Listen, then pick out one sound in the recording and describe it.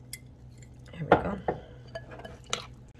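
A spoon scrapes and clinks against a ceramic bowl while stirring.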